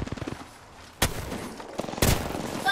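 Single heavy gunshots crack sharply.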